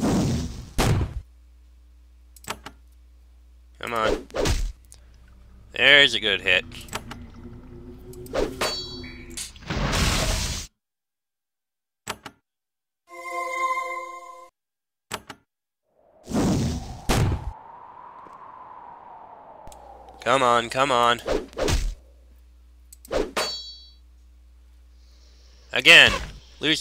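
Weapons clash and strike in a fight, in short bursts.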